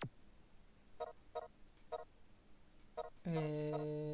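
Short electronic blips sound as menu options change.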